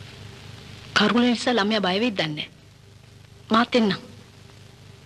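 A woman speaks in a low, tense voice nearby.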